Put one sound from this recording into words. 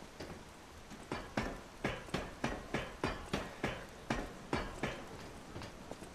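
Footsteps clank in a quick, even rhythm up a metal ladder.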